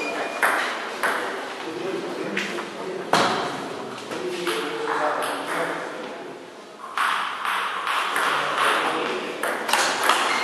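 A table tennis ball clicks back and forth off the table and the bats.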